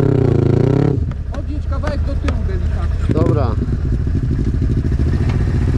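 A quad bike engine idles with a low, steady rumble.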